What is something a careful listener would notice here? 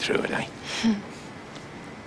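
A man speaks quietly and warmly.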